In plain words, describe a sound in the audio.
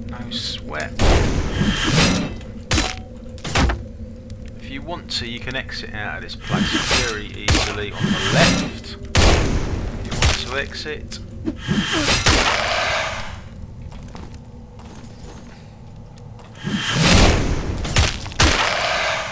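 A sword swooshes and clangs against a shield in a fight.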